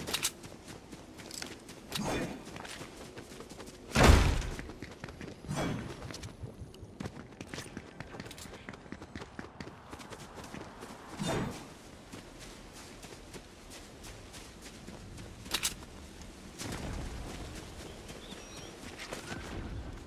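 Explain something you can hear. Footsteps run quickly over grass and ground.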